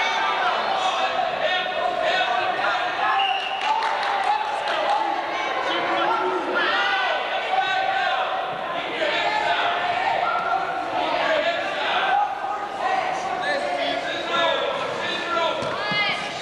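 Wrestlers' shoes squeak on the mat.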